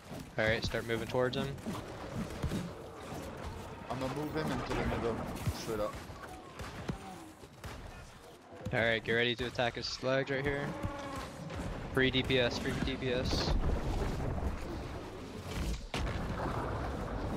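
Magic blasts burst with loud booms.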